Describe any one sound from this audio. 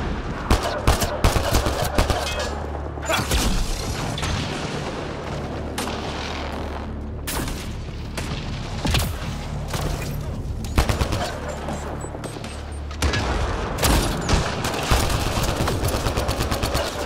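Rapid bursts of gunfire crack loudly.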